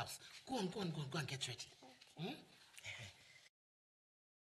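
A woman speaks loudly with animation, close by.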